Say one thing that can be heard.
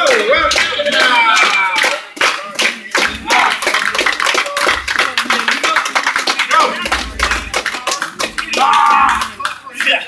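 People in a crowd clap their hands rhythmically.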